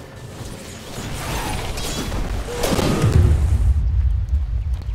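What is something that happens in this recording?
Spells whoosh and crackle in a fantasy battle.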